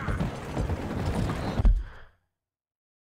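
Horse hooves clop on a wooden bridge.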